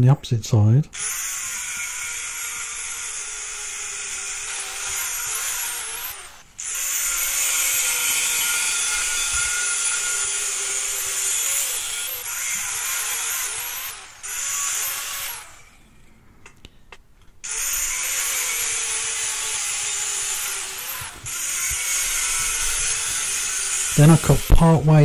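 An angle grinder whines loudly as it cuts through metal.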